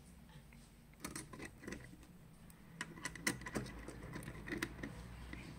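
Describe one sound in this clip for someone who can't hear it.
Metal parts of a fishing reel click and rattle as it is handled.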